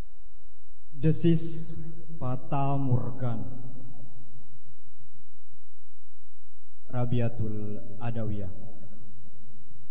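A young man recites dramatically into a microphone, with pauses.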